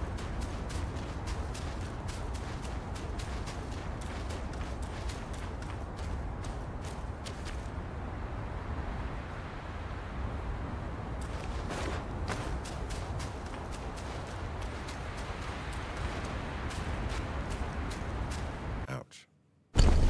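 Footsteps crunch on sand and gravel.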